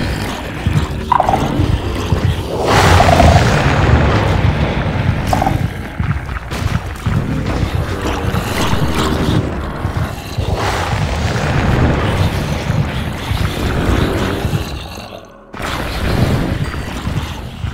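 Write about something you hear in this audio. Zombies groan and growl close by.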